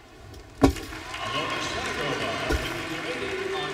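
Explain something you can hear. A crowd in a large echoing arena cheers and applauds.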